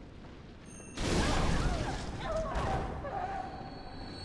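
A creature shrieks and snarls loudly.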